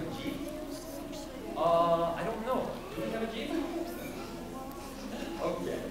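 Many children chatter and call out together in a large echoing hall.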